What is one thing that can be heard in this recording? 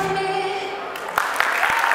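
A young woman sings a long held note through a microphone.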